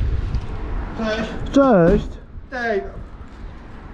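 A man speaks a short distance away.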